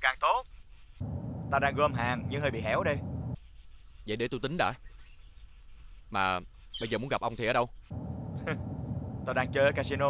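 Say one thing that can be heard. A man talks with animation on a phone.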